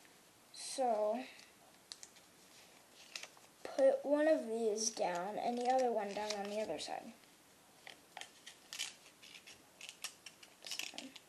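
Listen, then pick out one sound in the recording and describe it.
Origami paper rustles and crinkles as hands fold and crease it.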